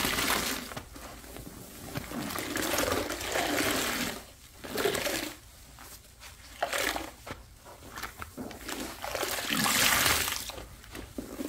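A soapy sponge squishes and squelches in water.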